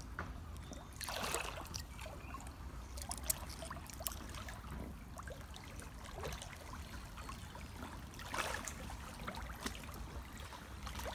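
Rubber boots splash and slosh through shallow water.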